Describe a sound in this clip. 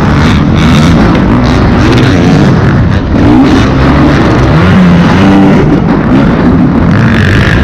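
A motorcycle engine roars loudly close by, revving up and down as it shifts gears.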